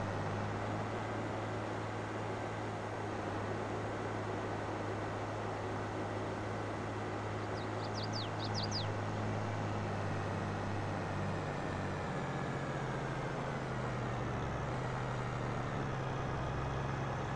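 A tractor engine drones steadily, its pitch dropping as it slows down.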